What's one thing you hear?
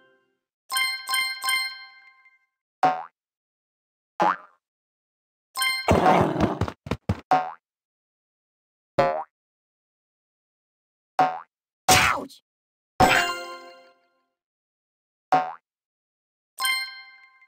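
Bright game chimes ring out in quick bursts.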